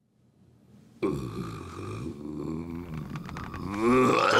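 A man groans and grunts in strained pain, close by.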